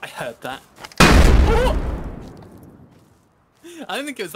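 A loud explosion booms close by and rumbles away.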